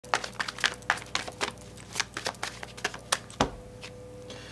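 Playing cards riffle and snap softly in a man's hands.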